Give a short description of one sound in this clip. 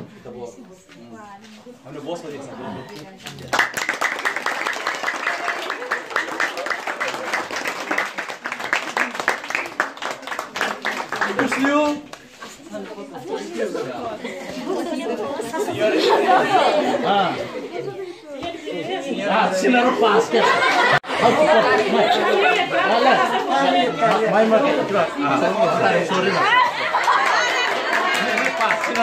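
A group of children and adults chatter and talk together nearby.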